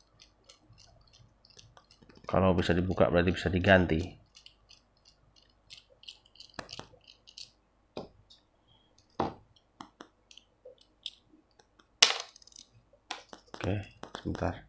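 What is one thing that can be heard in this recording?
Small metal parts click and tick as they are handled.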